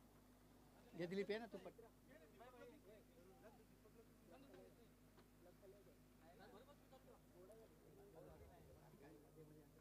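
Men talk quietly nearby.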